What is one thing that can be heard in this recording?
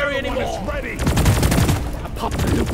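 A rapid-fire gun shoots a quick burst.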